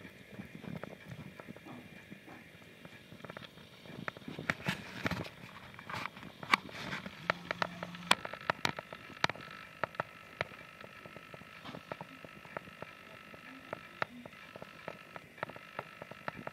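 A small animal laps milk with quick, wet clicks close by.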